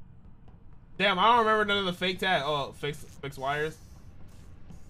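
A young man exclaims with animation, close to a headset microphone.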